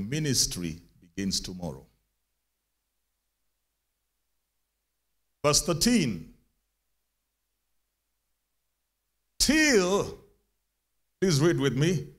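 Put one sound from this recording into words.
A man preaches with animation into a microphone, heard through a loudspeaker, in bursts with long pauses.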